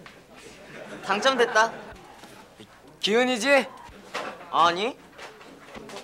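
A young man speaks to someone close by.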